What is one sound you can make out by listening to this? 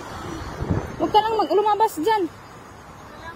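A cat meows loudly close by.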